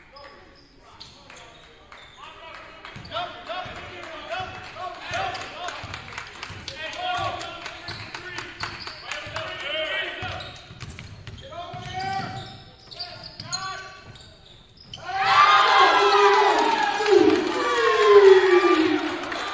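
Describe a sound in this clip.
A basketball bounces on the court.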